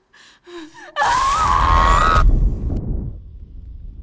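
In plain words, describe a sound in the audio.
A young woman screams loudly in anguish.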